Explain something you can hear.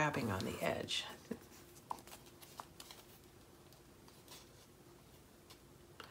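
Stiff paper rustles as a card flap is folded open.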